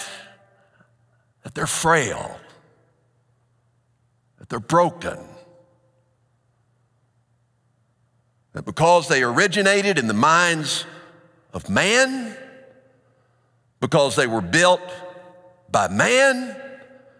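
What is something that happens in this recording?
A middle-aged man speaks with expression through a headset microphone in a large echoing hall, pausing between phrases.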